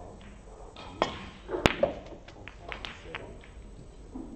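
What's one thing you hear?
Snooker balls click sharply against each other.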